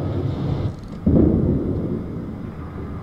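A heavy naval gun fires with a loud, booming blast that rolls away.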